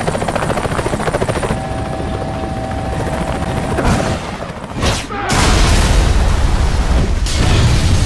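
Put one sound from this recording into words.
A helicopter's rotor thunders overhead.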